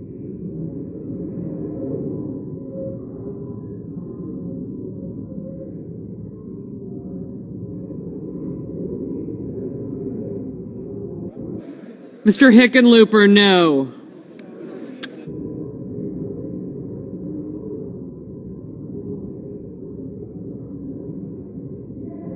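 Many people murmur and talk quietly in a large hall.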